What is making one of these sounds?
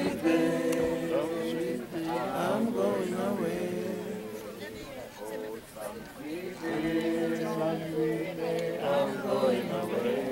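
A group of women sing a slow hymn together nearby, outdoors.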